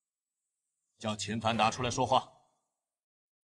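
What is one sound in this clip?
A middle-aged man answers in a stern, low voice, close by.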